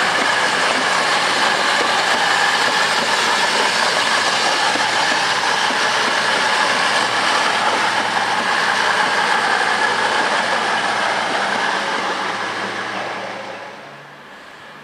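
A passing train rumbles and roars loudly along the tracks, then fades away.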